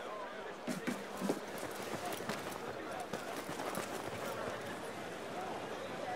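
Footsteps patter quickly across a stone floor.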